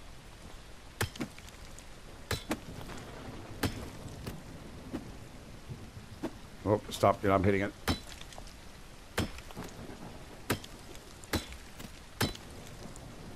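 A pickaxe strikes rock again and again with sharp knocks.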